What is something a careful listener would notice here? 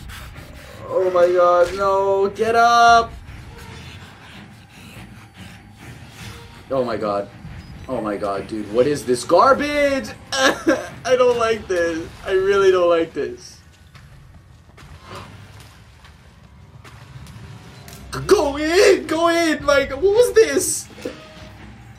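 A young man talks animatedly close to a microphone.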